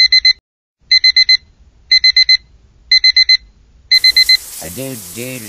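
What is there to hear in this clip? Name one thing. An alarm clock beeps in quick bursts of four.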